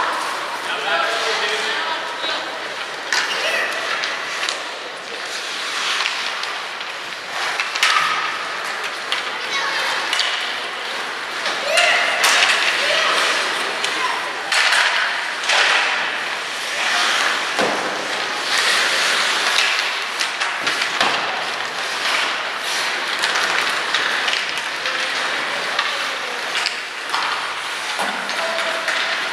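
Ice hockey skates scrape and carve across ice in an echoing arena.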